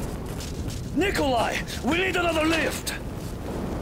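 A man shouts urgently over a radio.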